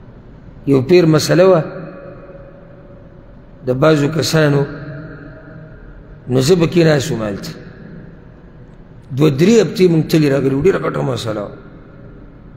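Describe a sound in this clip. A man speaks calmly into a microphone in short phrases, with a slight echo.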